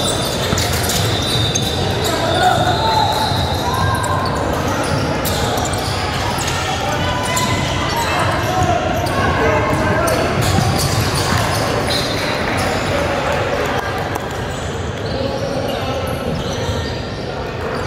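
Young players shout and call out to each other across an echoing gym.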